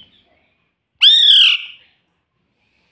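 A parrot squawks loudly close by.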